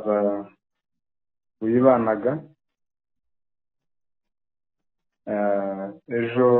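A man speaks calmly over a phone line in short phrases.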